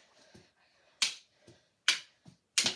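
Hockey sticks clack against a ball on a hard floor.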